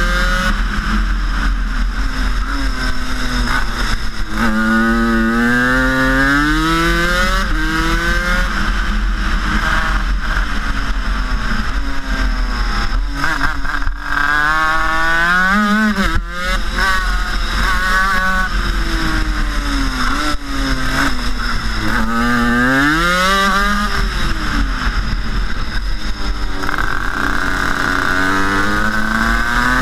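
A kart's two-stroke engine buzzes loudly up close, its pitch rising and falling as it speeds up and slows down.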